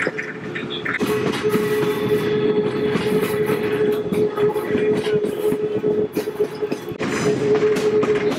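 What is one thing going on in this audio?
Train wheels squeal steadily on a curve.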